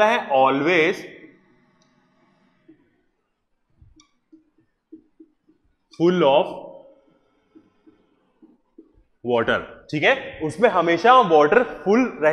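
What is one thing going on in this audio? A man lectures with animation, close by.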